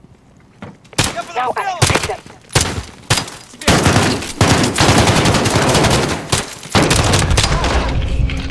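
Gunfire bursts loudly in rapid shots.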